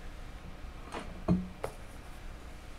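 A light hollow object knocks against a table once.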